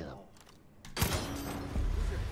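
A metal padlock is struck and breaks with a loud clank.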